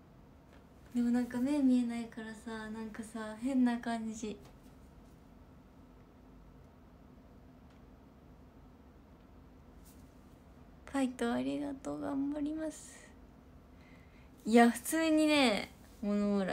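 A young woman speaks brightly and animatedly close to a microphone.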